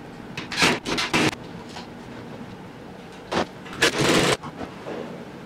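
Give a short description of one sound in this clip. Metal tools clatter as they are hung on wall hooks.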